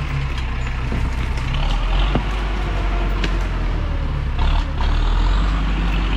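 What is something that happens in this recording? Branches and twigs snap and crack under heavy wheels.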